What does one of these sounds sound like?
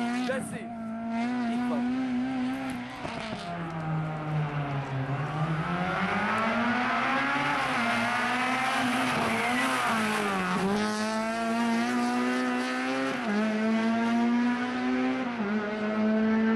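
A rally car engine roars and revs hard as the car speeds past.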